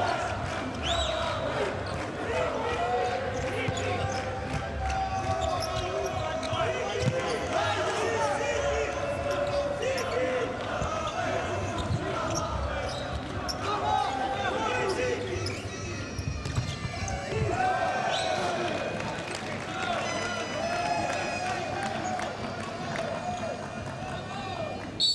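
A crowd chants and cheers in a large indoor arena.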